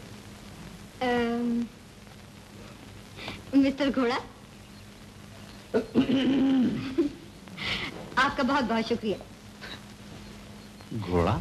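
A young man speaks playfully, close by.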